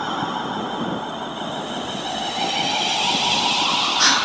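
Wind blows a curtain, which flutters softly.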